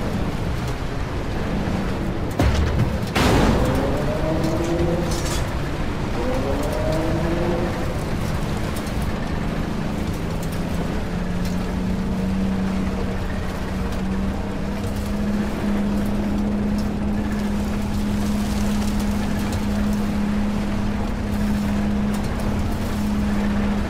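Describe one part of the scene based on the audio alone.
A tank engine rumbles and drones steadily.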